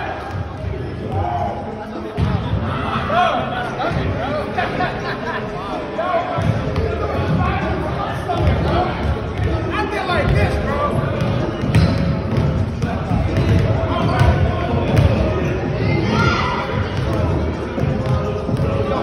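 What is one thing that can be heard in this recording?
Young people talk and shout with animation in a large echoing hall.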